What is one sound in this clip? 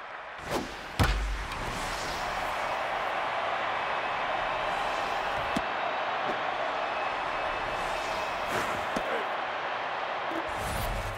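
A crowd cheers loudly, then slowly settles.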